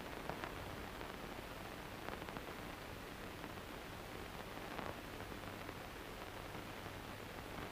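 Cloth rustles.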